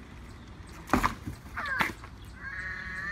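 A child's bicycle crashes onto the ground with a clatter.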